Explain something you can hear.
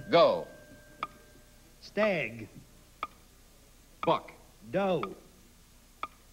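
A clock ticks once every second.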